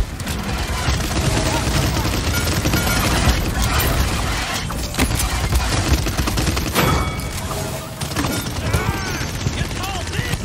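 Explosions burst with loud booms.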